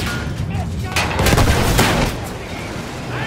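A large explosion booms.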